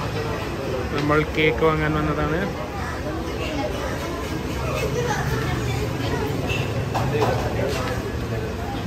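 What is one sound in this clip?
A young man speaks casually nearby.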